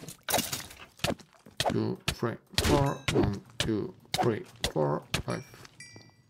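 A sword strikes repeatedly with sharp hits.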